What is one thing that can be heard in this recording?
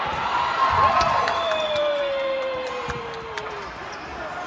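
A volleyball is hit with sharp slaps in an echoing hall.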